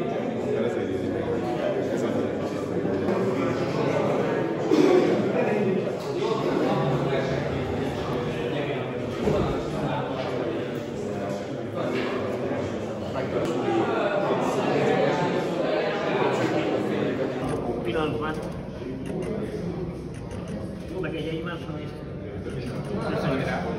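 A crowd of men and women chatter in an echoing hall.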